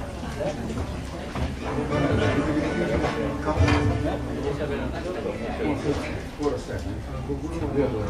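A double bass plucks a low bass line.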